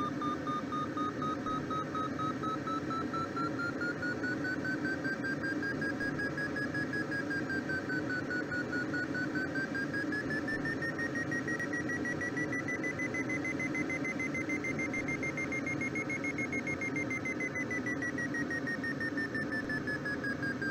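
A glider's variometer hums a steady tone that slowly rises and falls in pitch.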